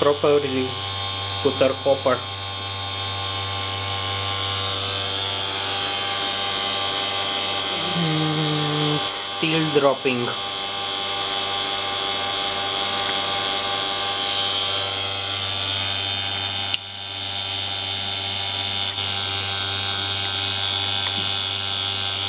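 A vacuum pump hums steadily and loudly close by.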